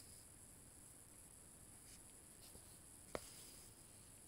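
Thread rasps softly as it is pulled through cloth.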